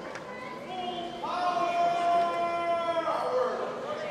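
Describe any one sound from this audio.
A group of young people sings together.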